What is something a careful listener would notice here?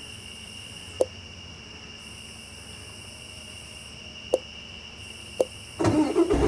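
Short interface clicks sound a few times.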